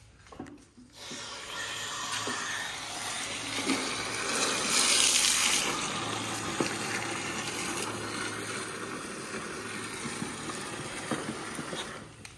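Water gushes from a hose into a bucket.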